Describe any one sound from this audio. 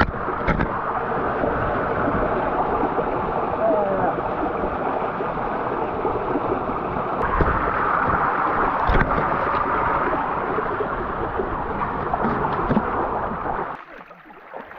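A waterfall splashes loudly onto rocks close by.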